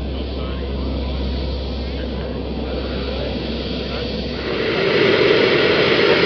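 A small jet engine roars and whines steadily.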